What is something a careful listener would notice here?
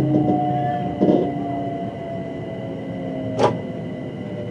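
A train's wheels clack over rail joints.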